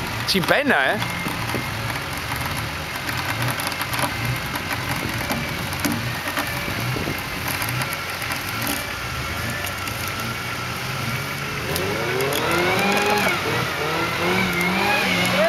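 An engine idles with a low, uneven rumble.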